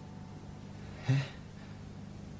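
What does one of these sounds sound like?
A young man asks a short, surprised question, close by.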